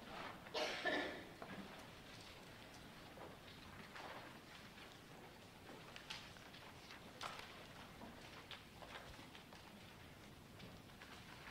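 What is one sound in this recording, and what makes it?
A man speaks quietly at a distance in an echoing room.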